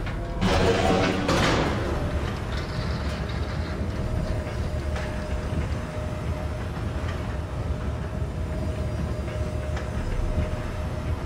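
A lift rumbles low and steadily as it moves.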